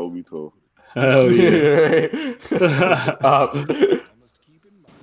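A young man laughs loudly over an online call.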